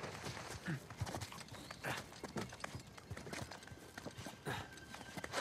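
Footsteps hurry across stone.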